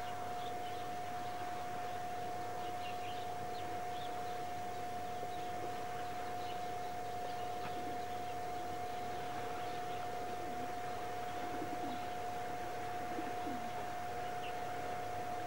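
Small waves lap gently at a shore.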